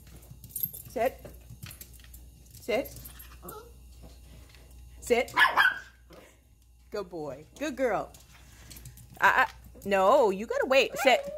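A dog whines and yelps close by.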